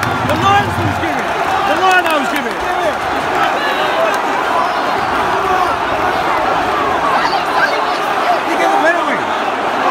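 A large stadium crowd cheers and shouts loudly outdoors.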